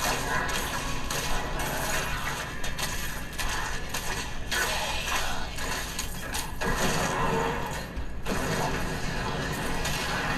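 Weapons clash and strike in quick blows.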